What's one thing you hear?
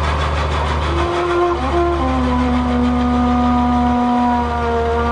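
A trumpet plays long, held notes.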